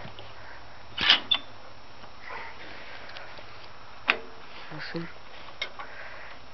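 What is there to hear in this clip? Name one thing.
Metal parts click and clank as a hand handles them.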